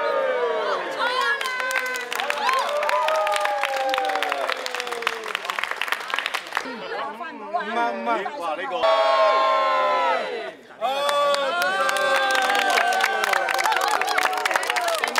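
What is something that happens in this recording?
Many people clap their hands.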